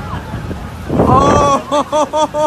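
Young men and women shout in alarm close by, outdoors.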